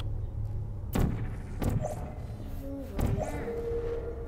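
A sci-fi gun fires with sharp electric zaps.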